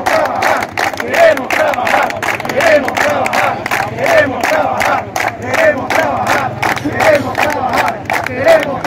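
A crowd of men chants loudly in rhythm outdoors.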